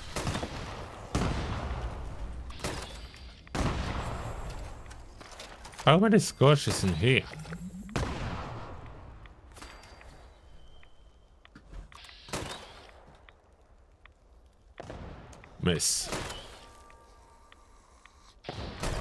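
Gunshots fire in loud bursts with echoing booms.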